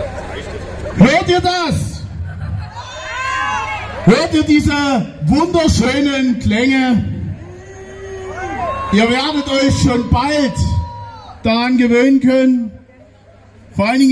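A man speaks forcefully through a loudspeaker.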